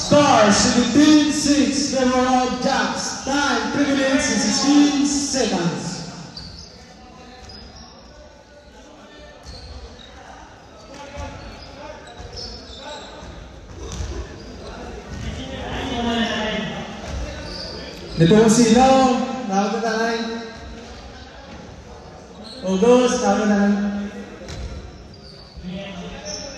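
A crowd of young people chatters in the background.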